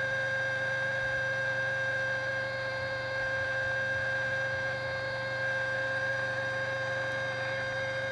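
A telephone dial tone hums steadily from a lifted handset.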